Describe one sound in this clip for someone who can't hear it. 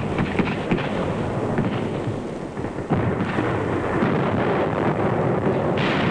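Water splashes as men wade ashore.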